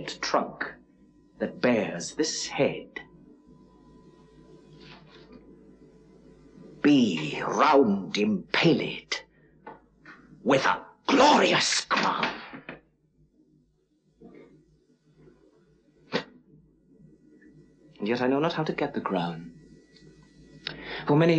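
A man speaks theatrically, close by, with pauses.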